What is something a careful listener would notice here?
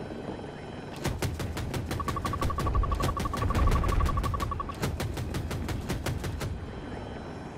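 A helicopter's cannon fires in a rapid burst.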